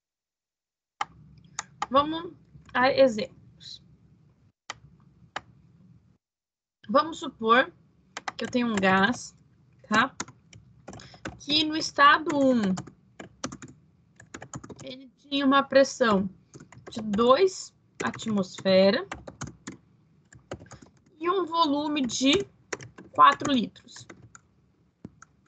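A woman speaks calmly over an online call, explaining at a steady pace.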